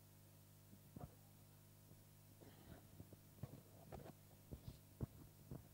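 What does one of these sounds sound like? Paper rustles and taps close to a microphone.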